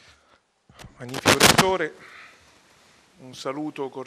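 An older man speaks into a microphone.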